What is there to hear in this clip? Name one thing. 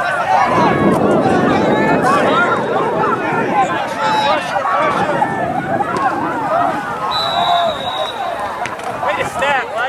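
A crowd of spectators cheers and calls out from the sidelines.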